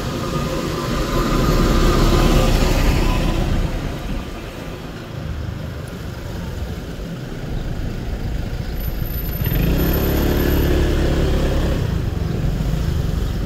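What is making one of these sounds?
A motorbike engine hums steadily close by.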